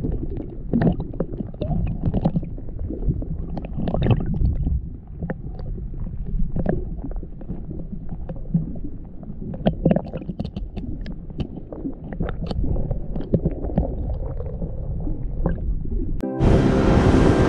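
Muffled underwater sloshing and bumps sound close by.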